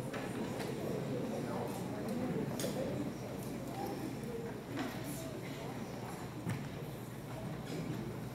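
People shuffle and sit down on wooden pews.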